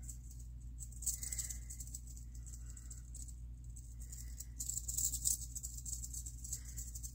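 A rattlesnake buzzes its rattle in short bursts.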